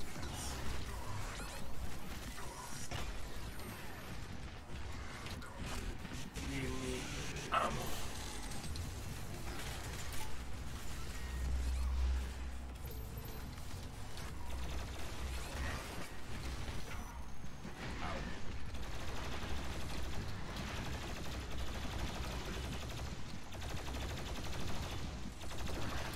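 Guns fire rapidly in a game.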